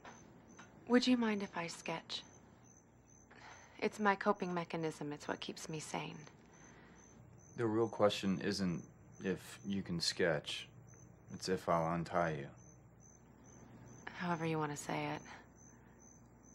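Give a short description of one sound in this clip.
A young woman speaks quietly and emotionally, close by.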